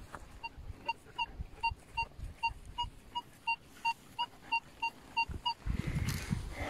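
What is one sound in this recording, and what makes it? A metal detector beeps in quick, repeated short tones.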